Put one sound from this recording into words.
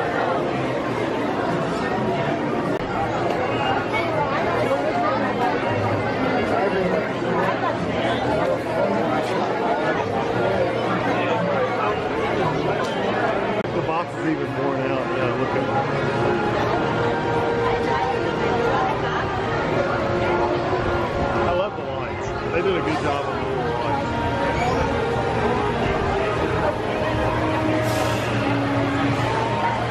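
A crowd of people chatters all around.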